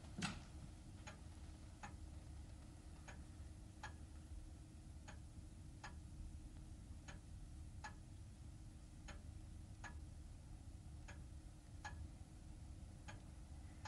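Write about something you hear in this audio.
A clock ticks slowly and steadily.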